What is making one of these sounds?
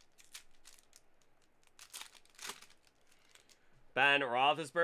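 A foil card wrapper crinkles in someone's hands.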